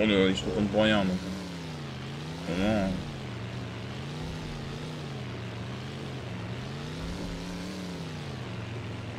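A car engine drones and rises and falls in pitch.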